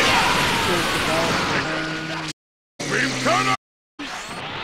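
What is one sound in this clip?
Energy blasts explode with a loud, rushing roar.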